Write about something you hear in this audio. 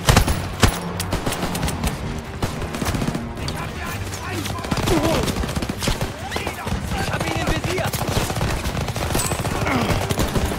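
Gunfire cracks and rattles in rapid bursts.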